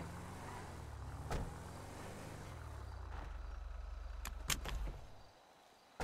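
A truck engine rumbles along a dirt road.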